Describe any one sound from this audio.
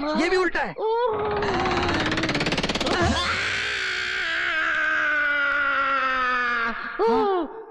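A man screams in a long, loud wail that slowly drops in pitch.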